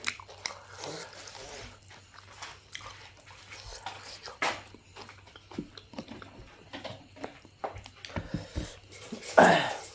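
Bones and meat clatter against a plate.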